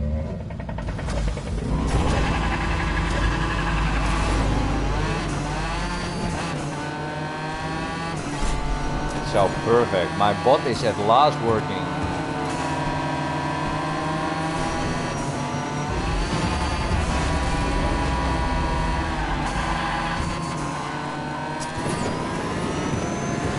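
Racing car engines roar and rev.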